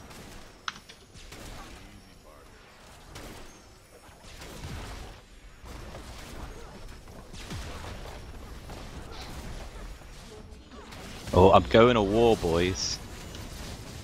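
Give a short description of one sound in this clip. Video game sound effects of spells and hits play.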